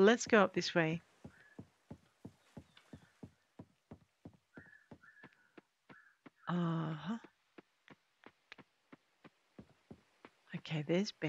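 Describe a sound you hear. Footsteps tap quickly on wooden boards and paths.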